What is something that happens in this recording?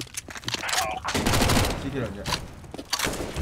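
Gunshots ring out in a short burst.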